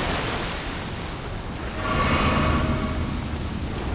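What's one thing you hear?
A magic spell shimmers and hisses, then rings out in a bright tone.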